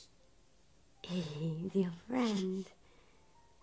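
A baby laughs loudly.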